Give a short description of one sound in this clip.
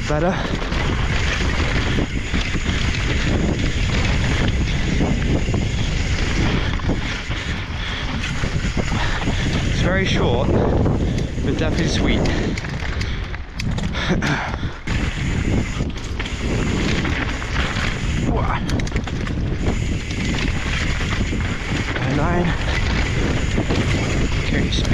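A mountain bike rattles and clatters over a rough dirt trail.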